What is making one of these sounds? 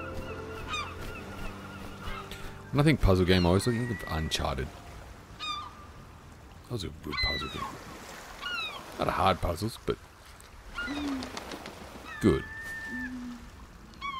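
Waves wash gently onto a sandy shore.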